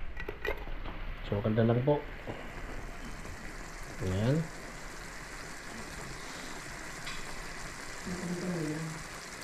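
Food sizzles and simmers in a frying pan.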